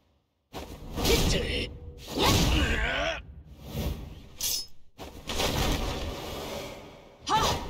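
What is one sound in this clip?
An energy blast bursts with a crackling whoosh.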